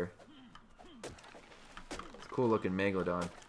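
A stone hatchet chops into a tree trunk with dull thuds.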